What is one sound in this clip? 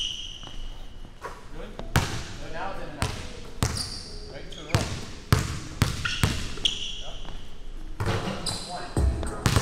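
A basketball swishes through a net.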